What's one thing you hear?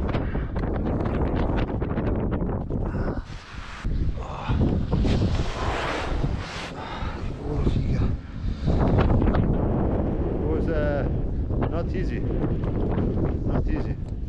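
Wind rushes loudly against a microphone outdoors.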